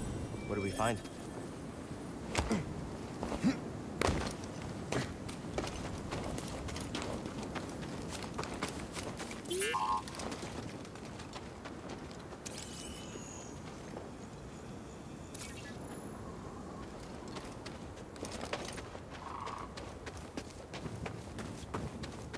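Footsteps run and scramble over rocky ground.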